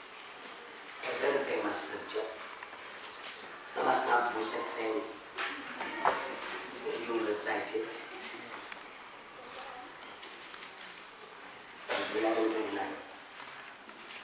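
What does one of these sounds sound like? A man speaks slowly and solemnly into a microphone in an echoing hall, with long pauses.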